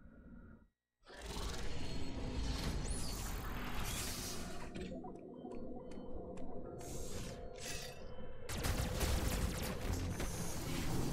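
Video game sound effects whoosh and clank loudly.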